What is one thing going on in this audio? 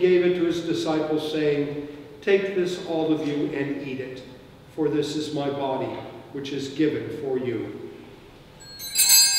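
An elderly man speaks calmly and slowly into a microphone in an echoing room.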